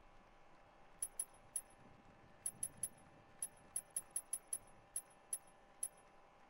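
Short electronic menu clicks tick one after another.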